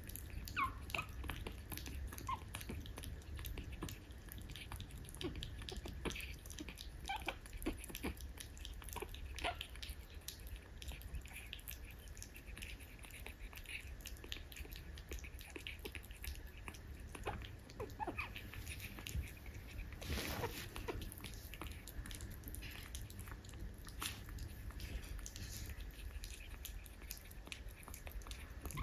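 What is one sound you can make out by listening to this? A puppy laps and chews food noisily from a bowl, close by.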